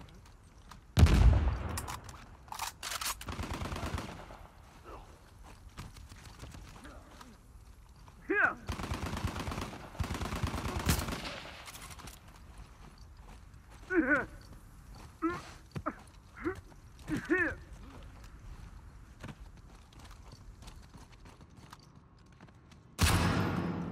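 A rifle fires loud, booming shots.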